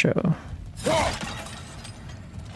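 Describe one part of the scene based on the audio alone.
Rocks crash and tumble down.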